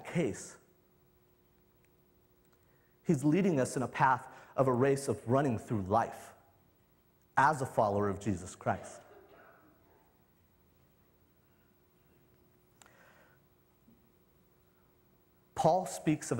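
A young man speaks with animation through a microphone in a large hall, pausing between phrases.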